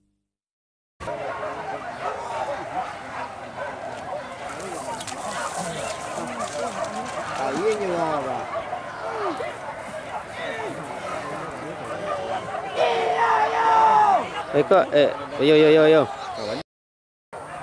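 Hunting dogs bark and yelp excitedly.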